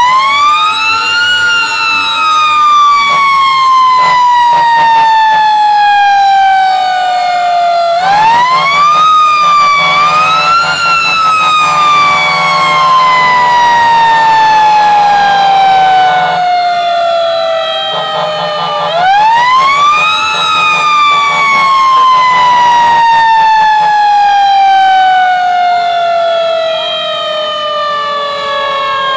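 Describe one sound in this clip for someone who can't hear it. A fire engine's diesel engine rumbles while driving.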